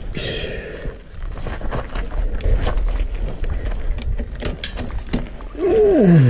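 A bicycle rattles and clicks as it is handled.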